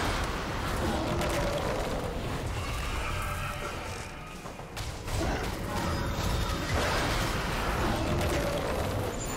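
Game spell effects whoosh and burst in a fight.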